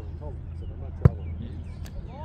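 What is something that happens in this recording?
A foot kicks a ball with a sharp thud.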